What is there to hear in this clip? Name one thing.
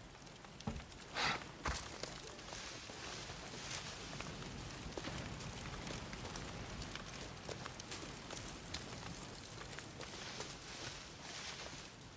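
Footsteps crunch softly through grass.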